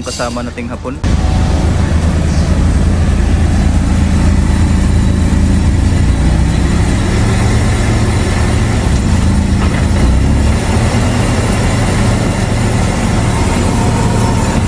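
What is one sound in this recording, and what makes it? A car wheel spins fast on rollers with a loud, steady rumble and whine.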